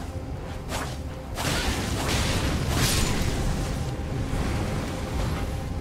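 A sword clashes in quick strikes.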